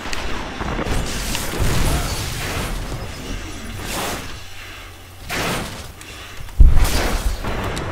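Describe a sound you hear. Guns fire in sharp bursts.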